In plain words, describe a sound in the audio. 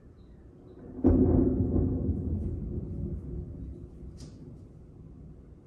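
Thunder rumbles deeply and slowly fades.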